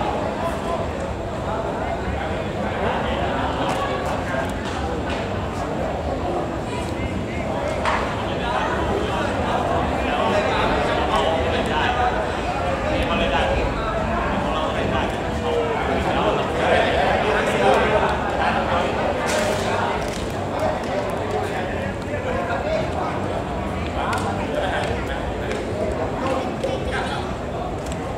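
Young men shout and call to each other outdoors, some way off.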